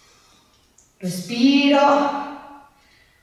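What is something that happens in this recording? A woman speaks with energy, close to a microphone.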